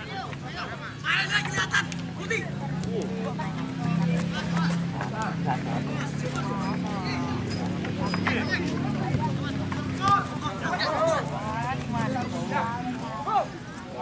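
A crowd of spectators chatters in the distance.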